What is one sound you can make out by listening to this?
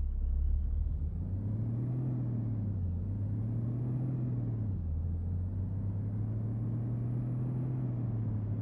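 A bus engine revs up repeatedly, rising and dropping in pitch as it gathers speed.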